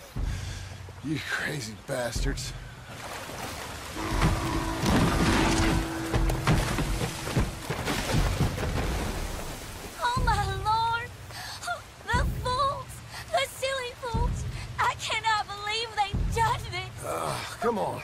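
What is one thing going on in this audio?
A young woman exclaims in disbelief, close by.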